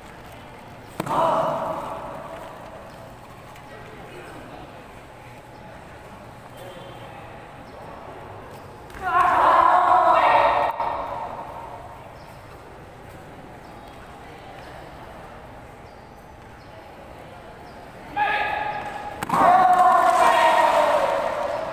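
Young men shout loudly in short bursts in a large echoing hall.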